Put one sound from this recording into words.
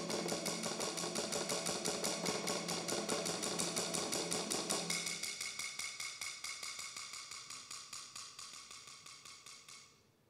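A mallet taps rapidly and steadily on a cymbal resting on a snare drum, with a buzzing shimmer that slowly fades.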